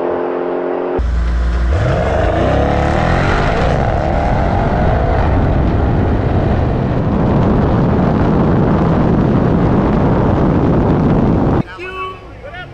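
Wind rushes past a fast-moving car.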